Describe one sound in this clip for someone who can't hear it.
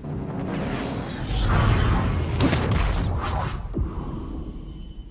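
A spaceship engine roars loudly as the ship speeds away.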